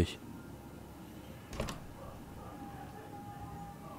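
A door bumps open.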